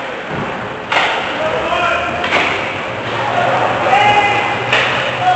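Players shout across a large echoing rink.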